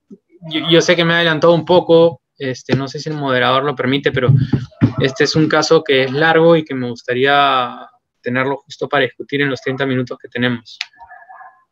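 A young man speaks calmly and steadily through an online call.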